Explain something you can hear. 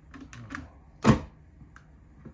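A safe door thuds shut.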